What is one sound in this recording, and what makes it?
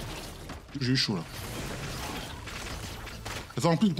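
Video game sound effects of quick slashing attacks play.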